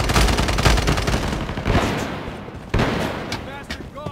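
Gunshots ring out in quick bursts, echoing in a large hall.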